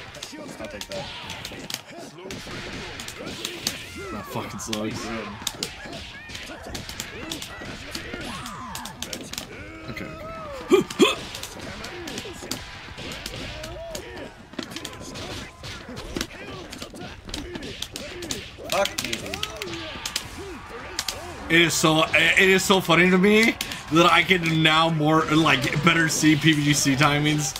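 Punches and kicks land with sharp smacking hits in a game fight.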